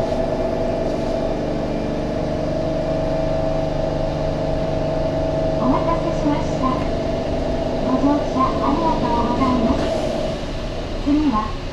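A train rolls forward along its track.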